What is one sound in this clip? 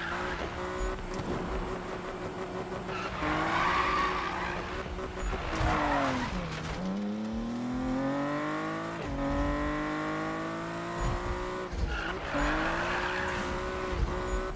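A sports car engine roars, dropping and climbing in pitch through gear changes.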